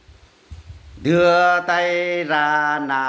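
An older man sings loudly, holding long notes, close by.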